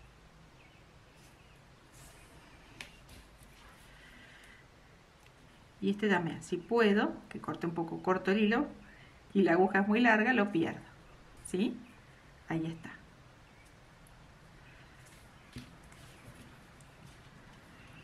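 A yarn needle softly rustles through yarn.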